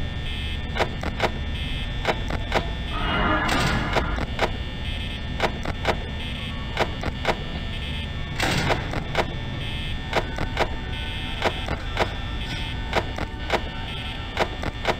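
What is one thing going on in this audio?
A small electric fan hums steadily.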